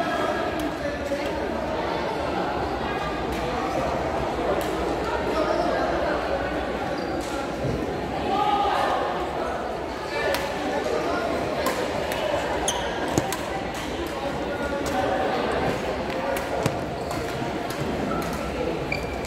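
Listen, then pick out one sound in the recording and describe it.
A crowd chatters and echoes in a large hall.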